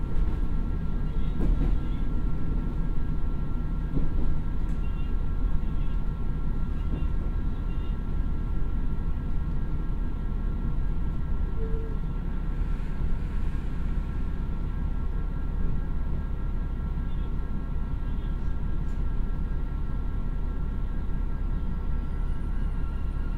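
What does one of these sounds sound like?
A diesel train engine rumbles steadily.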